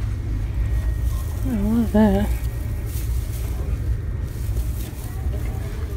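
Tinsel rustles and crinkles under a hand.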